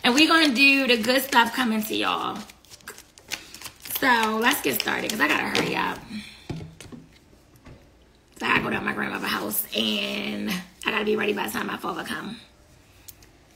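A young woman speaks close to the microphone, with animation.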